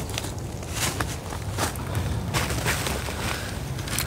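Dry leaves rustle underfoot.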